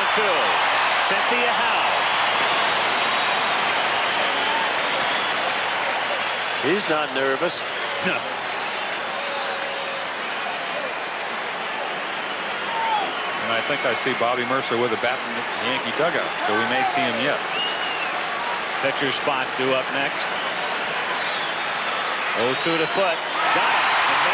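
A large crowd roars and cheers steadily in a stadium.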